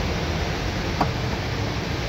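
A small plastic part clicks as it is pulled from its socket.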